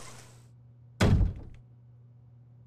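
A heavy door slams shut.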